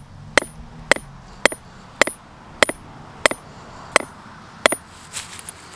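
A hammer strikes a metal stake into the ground with sharp, regular blows.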